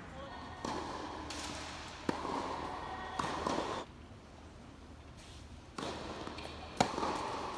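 Tennis shoes squeak on a court.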